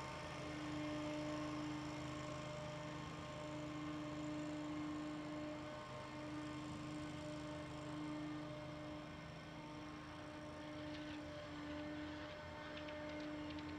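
A race car engine idles steadily in the distance.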